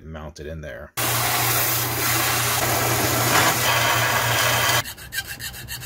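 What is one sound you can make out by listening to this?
A belt sander whirs loudly as a blade is ground against it.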